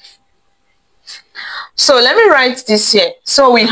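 A young woman speaks clearly and with animation close by.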